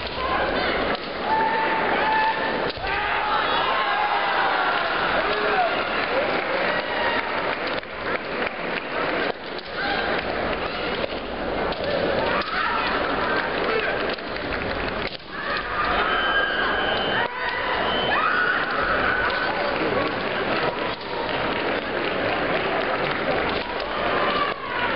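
Bamboo swords clack together.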